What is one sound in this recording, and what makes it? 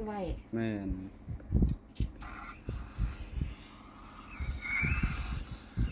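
A marker pen squeaks and scratches on paper.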